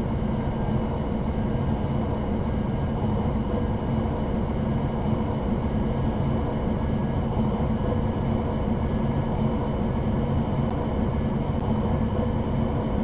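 A train's electric motors hum steadily as it rolls along the track.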